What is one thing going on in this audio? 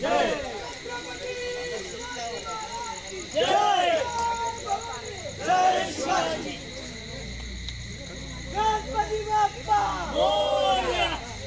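A crowd of young men shouts and cheers loudly outdoors.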